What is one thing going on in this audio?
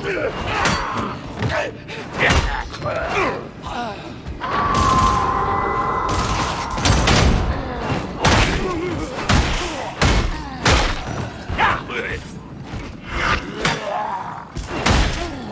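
Heavy blows thud against bodies.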